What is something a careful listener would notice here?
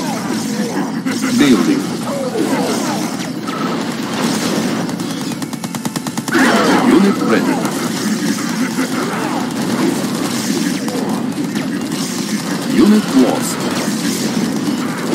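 Weapons fire in a real-time strategy video game battle.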